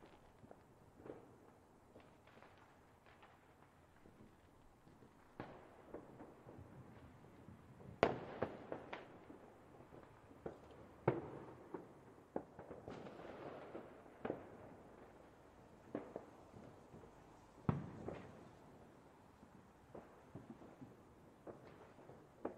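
Fireworks burst with sharp bangs and crackles.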